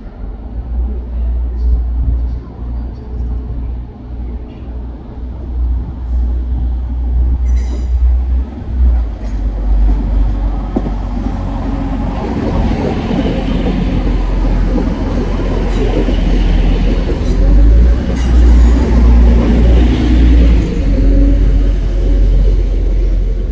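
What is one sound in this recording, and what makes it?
A diesel train rumbles as it approaches and passes close by, growing louder.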